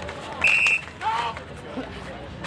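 Spectators outdoors shout and cheer.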